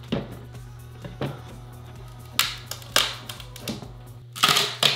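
Wooden boards knock and thud against each other.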